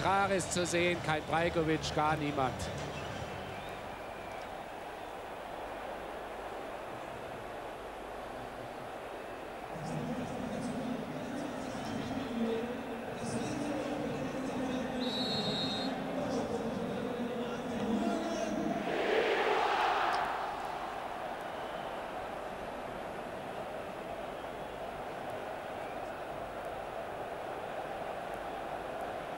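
A large stadium crowd murmurs and chants steadily outdoors.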